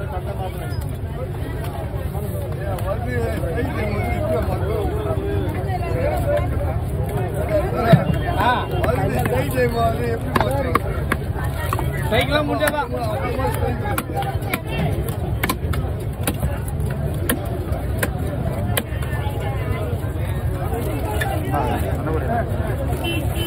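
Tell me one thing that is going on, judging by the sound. A knife chops through fish onto a wooden block with sharp knocks.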